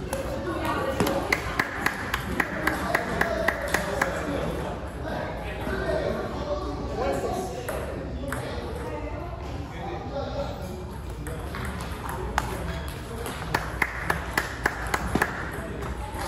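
A table tennis ball clicks quickly back and forth off paddles and a table.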